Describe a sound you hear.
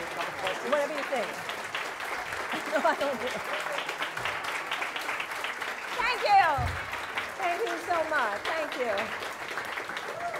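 A middle-aged woman speaks warmly into a microphone.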